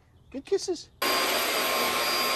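A vacuum cleaner roars steadily.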